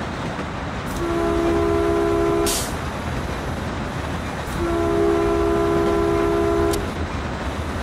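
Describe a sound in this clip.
A train horn blows two long blasts.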